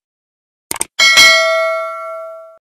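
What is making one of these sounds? A small bell rings and slowly fades.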